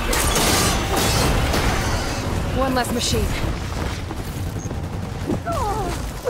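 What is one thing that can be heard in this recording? Heavy impacts and explosions crash and rumble.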